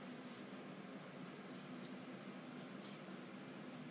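A young woman snaps her fingers.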